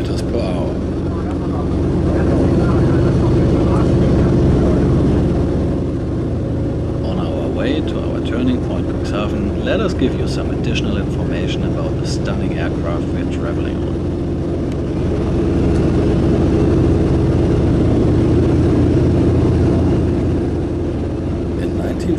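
A propeller engine drones loudly and steadily, swelling and easing at times.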